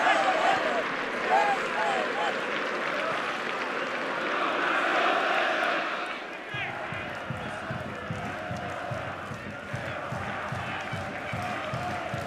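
A large stadium crowd roars steadily in the open air.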